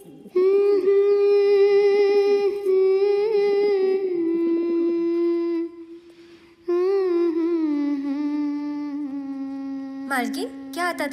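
A woman sings long, held notes.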